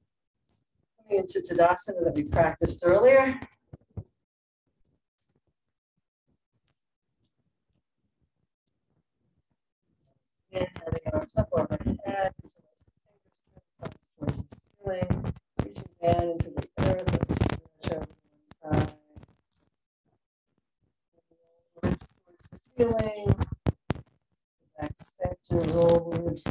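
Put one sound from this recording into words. A woman speaks calmly through a microphone on an online call, giving instructions in short bursts.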